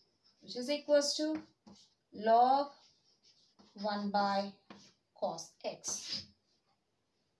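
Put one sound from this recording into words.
A young woman explains calmly and clearly, close by.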